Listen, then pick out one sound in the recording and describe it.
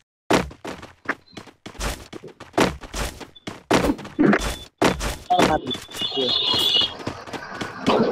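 Footsteps thud quickly on a wooden floor and stairs.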